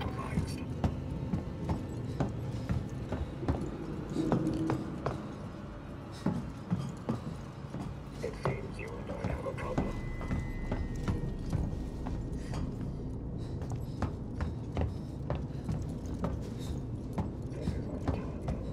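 Footsteps clank steadily on a metal floor.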